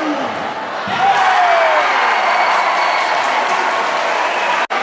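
Fans close by cheer loudly.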